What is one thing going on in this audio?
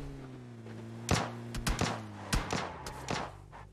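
Tyres thump sharply over bumps on dirt.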